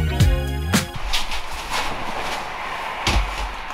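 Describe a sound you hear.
A leather couch creaks as two people sit down.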